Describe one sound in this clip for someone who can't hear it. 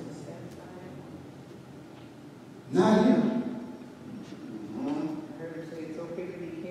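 A man speaks into a microphone, heard through loudspeakers in an echoing hall.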